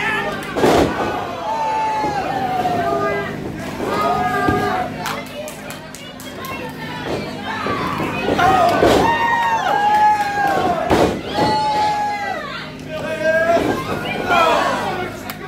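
A crowd of spectators shouts and cheers in a hall.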